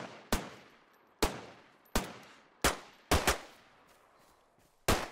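A pistol fires several sharp shots, each echoing briefly outdoors.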